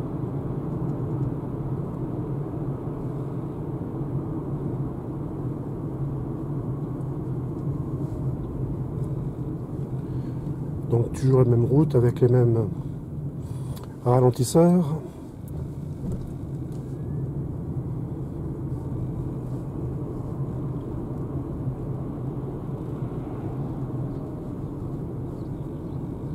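A car drives along a road with a steady low hum of tyres and motor from inside the cabin.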